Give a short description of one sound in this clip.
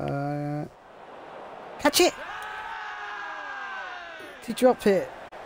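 A crowd cheers and murmurs.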